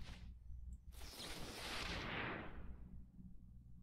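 A magical whoosh sweeps up and fades.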